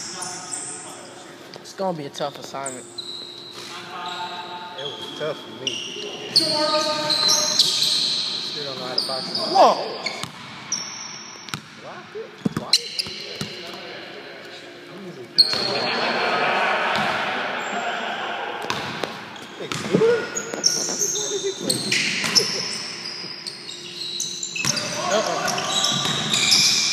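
Men call out and talk in a large echoing hall.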